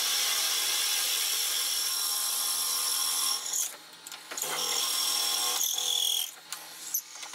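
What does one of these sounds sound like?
A chisel shaves against spinning wood with a loud hissing scrape.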